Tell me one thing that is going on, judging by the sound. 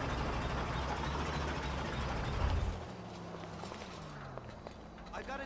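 A small tractor engine rumbles loudly, then settles to a quieter idle.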